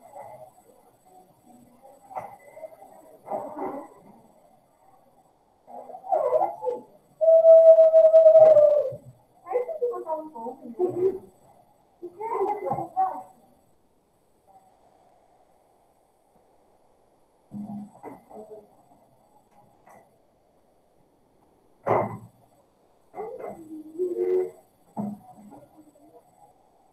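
A woman speaks calmly over an online call, in bursts with pauses.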